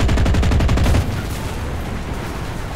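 An aircraft crashes with a dull explosion.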